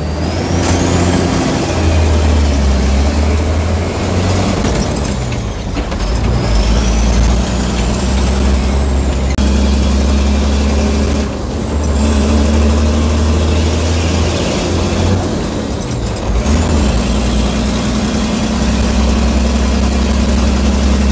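A bus engine roars up close, rising in pitch and dropping with each gear change.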